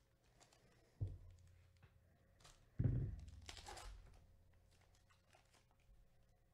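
A plastic wrapper crinkles and tears.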